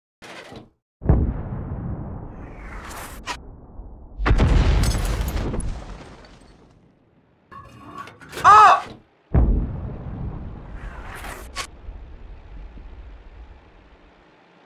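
A tank cannon fires with heavy booms that rumble away.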